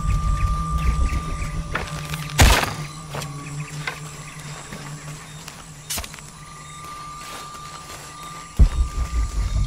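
Footsteps crunch over leaves and twigs.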